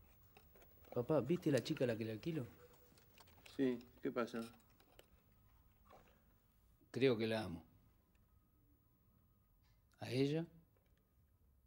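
A man speaks quietly and calmly nearby, in short phrases.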